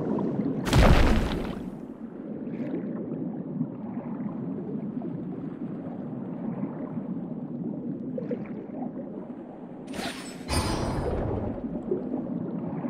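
Water swishes and bubbles steadily as a swimmer glides underwater.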